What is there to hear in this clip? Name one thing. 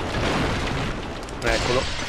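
A sword swings through the air with a whoosh.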